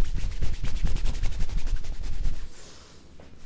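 Hands rapidly slap and pat on a person's back.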